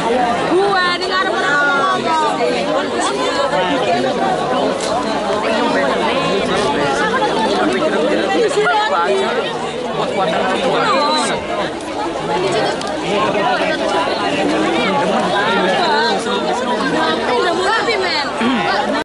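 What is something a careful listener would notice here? A large crowd chatters and calls out loudly outdoors.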